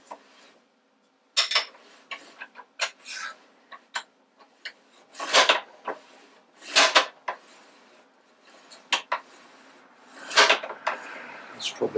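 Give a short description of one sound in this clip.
A metal lever rattles as it is swung around.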